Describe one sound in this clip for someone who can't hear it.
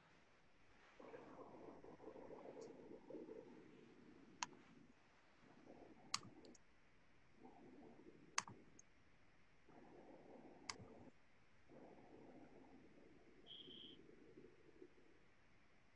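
A man speaks quietly and haltingly over an online call.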